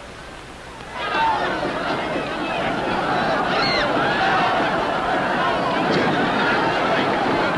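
A crowd of men and women clamour anxiously nearby.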